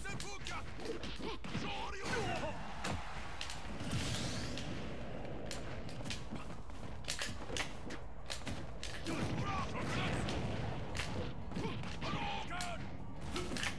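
Punches and kicks land with sharp thumps in a fighting game.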